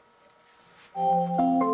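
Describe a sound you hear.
Music starts playing loudly from a small speaker.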